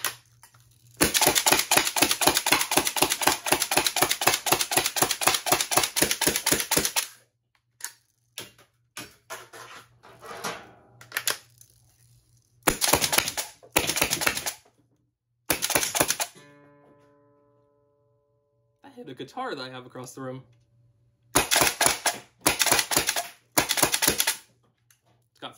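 A motorized toy blaster whirs and fires darts in rapid bursts.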